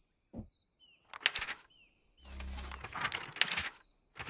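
A soft paper page flips with a quick swish.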